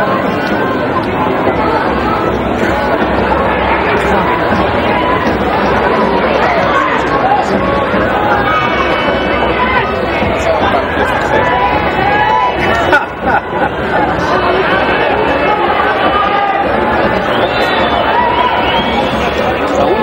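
A large crowd of spectators chatters and shouts throughout.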